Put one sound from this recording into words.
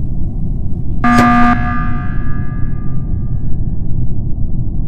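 An alarm blares loudly and fades.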